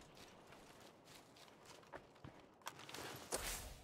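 A figure scrapes and thuds while climbing over a wall.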